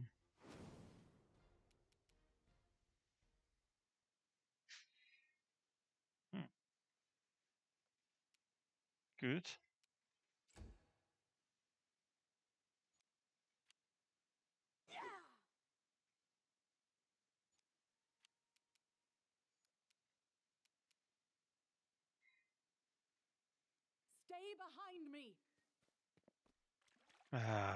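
Magic spells whoosh and crackle in short, sudden bursts.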